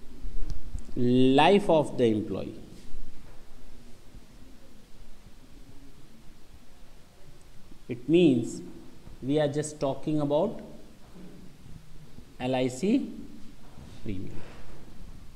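A man speaks in bursts, explaining calmly.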